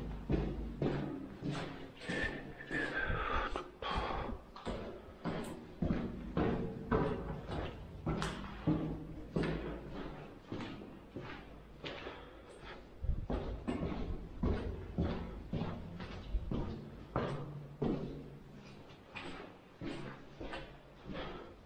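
Footsteps thud down concrete stairs in an echoing stairwell.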